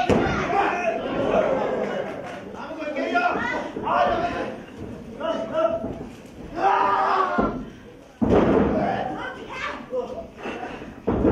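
A crowd in a hall cheers and shouts.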